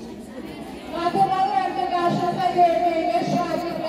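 A group of children sings together loudly.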